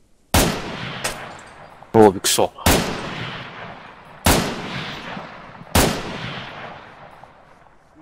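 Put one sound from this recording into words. Rifle shots ring out one at a time, each echoing away into the distance.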